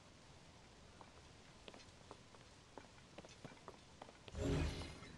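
Weapons clank and clatter in quick short hits.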